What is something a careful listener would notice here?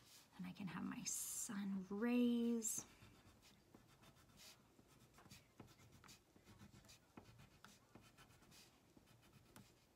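A crayon scratches softly across paper.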